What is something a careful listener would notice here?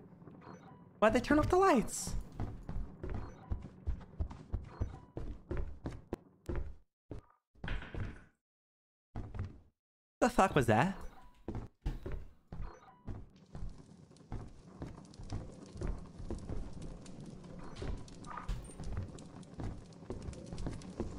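Footsteps thud steadily across a hard floor.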